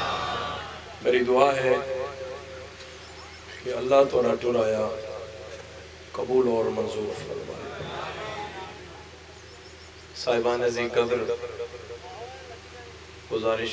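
A young man recites loudly through a microphone and loudspeakers, in short bursts with echoing pauses.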